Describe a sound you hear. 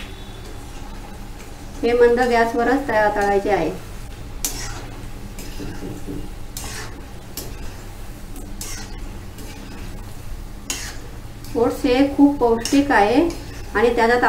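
A metal slotted spoon clinks and scrapes against a pan.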